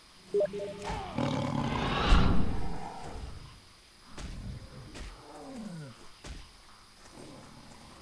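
Blows land on a snarling beast in a fight.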